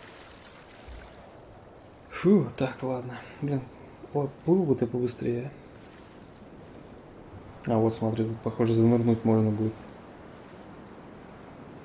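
Water splashes softly with swimming strokes.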